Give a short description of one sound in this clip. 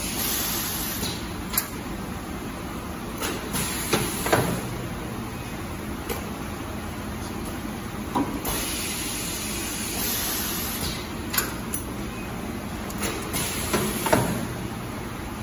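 Pneumatic parts of a machine click and hiss in short bursts.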